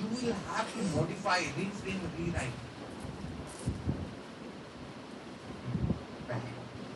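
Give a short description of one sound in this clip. A man speaks through a microphone in a large room, lecturing with animation.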